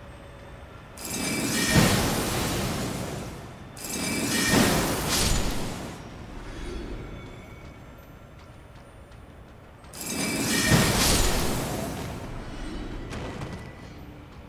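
A magical blast roars and whooshes in loud bursts.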